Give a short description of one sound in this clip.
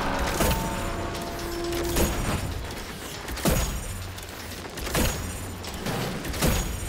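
Heavy gunshots boom every second and a half.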